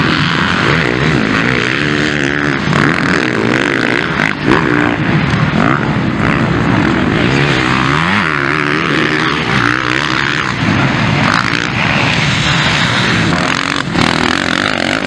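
Several motorcycle engines rev up and down loudly.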